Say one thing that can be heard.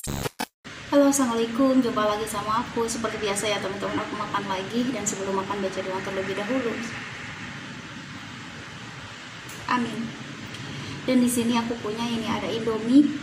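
A young woman talks calmly and close to the microphone.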